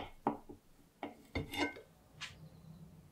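A metal cake server scrapes and clicks on a plate.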